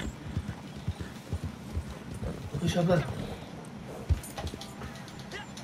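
A horse's hooves thud steadily on the ground.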